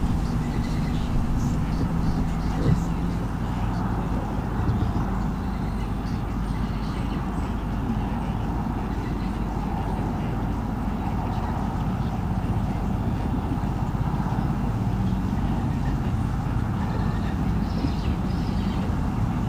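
Wind blows steadily outdoors, rustling leaves nearby.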